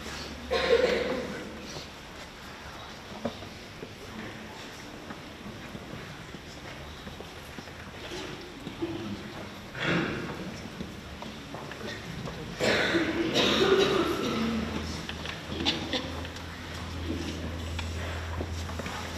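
Children in an audience murmur softly in an echoing hall.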